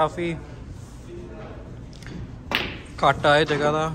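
A snooker cue strikes the cue ball, which clicks into the other balls.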